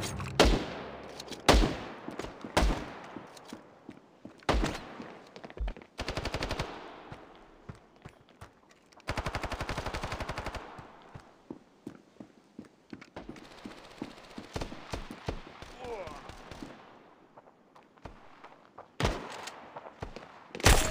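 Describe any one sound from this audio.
Shotgun blasts boom loudly, each followed by a short echo.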